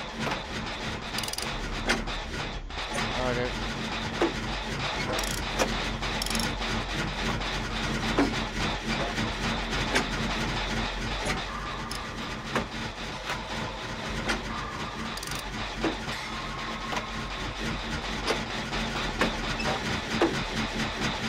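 Metal parts rattle and clank as an engine is repaired.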